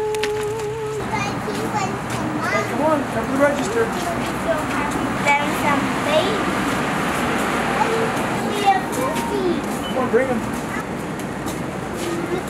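Young boys talk and chatter excitedly nearby.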